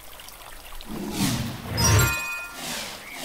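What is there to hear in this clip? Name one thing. A whooshing sweep sounds.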